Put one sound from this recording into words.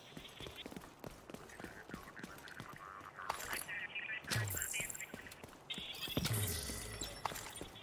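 Footsteps run quickly over hard pavement.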